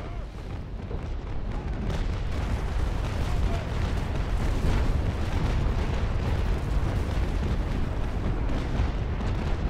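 Cannons boom in rapid, rumbling volleys.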